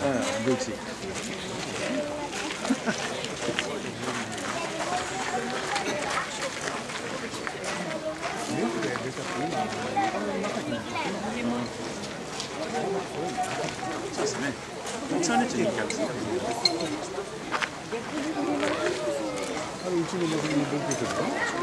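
A crowd of adults chatters outdoors.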